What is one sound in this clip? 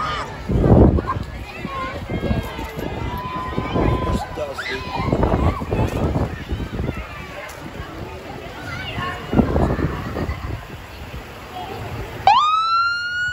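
A crowd chatters and cheers outdoors along a street.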